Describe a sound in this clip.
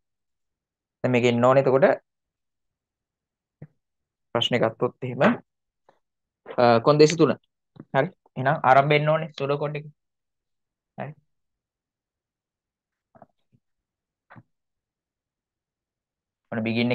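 A young man speaks calmly in short bursts into a close microphone, with pauses.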